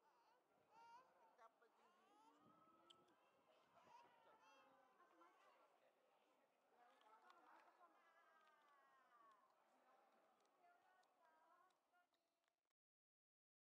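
A small child babbles.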